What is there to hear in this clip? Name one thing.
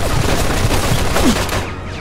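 Rifles fire in rapid bursts.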